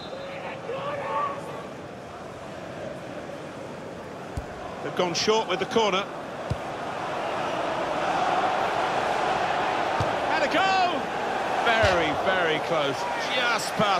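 A stadium crowd roars steadily and swells louder.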